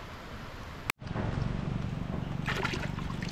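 Feet slosh and splash through shallow muddy water.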